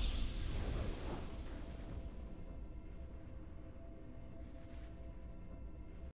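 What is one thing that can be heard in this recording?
Steady, low background music plays.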